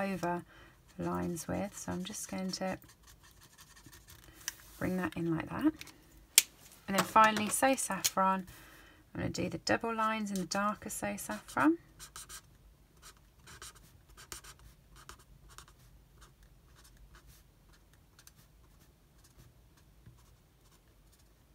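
A marker scratches lightly across paper in short strokes.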